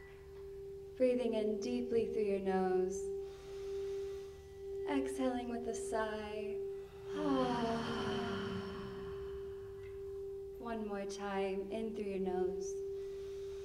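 A young woman sings softly into a microphone.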